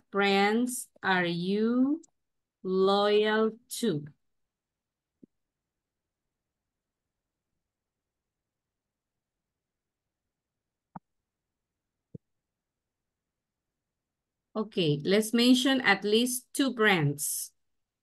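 A woman speaks expressively through an online call, with pauses.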